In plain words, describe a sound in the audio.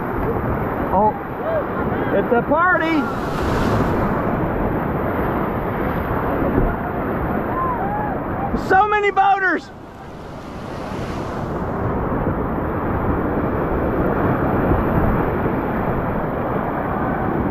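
Whitewater rushes and churns loudly all around.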